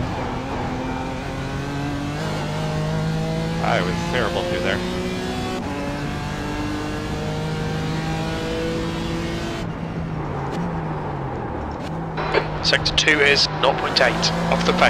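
A racing car engine roars and whines, rising in pitch through the gears.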